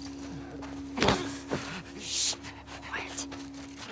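A man grunts and chokes as he is grabbed from behind.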